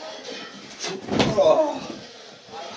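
A body thumps down onto a soft mattress.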